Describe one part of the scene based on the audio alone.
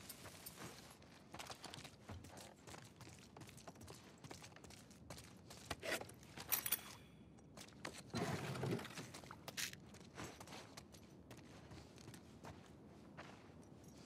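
Footsteps creak softly on a wooden floor.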